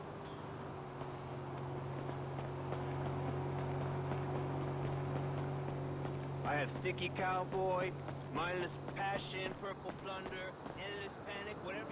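Footsteps slap on pavement at a brisk pace.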